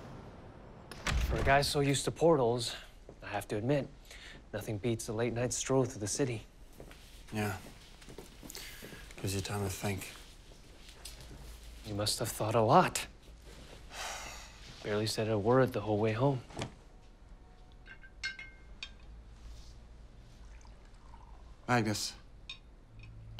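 Two young men talk calmly with each other, close by.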